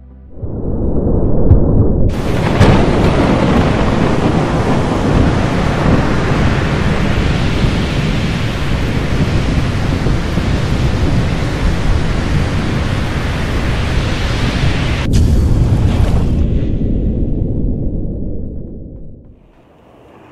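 Stormy sea waves roar and crash loudly.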